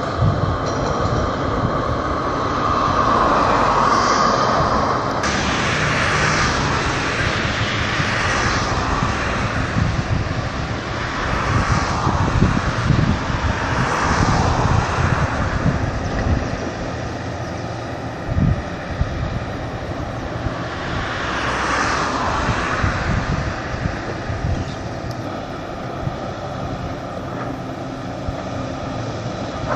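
Dry grass rustles in the wind.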